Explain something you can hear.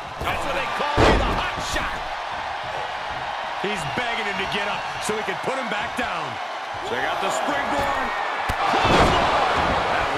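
Bodies slam heavily onto a wrestling ring mat.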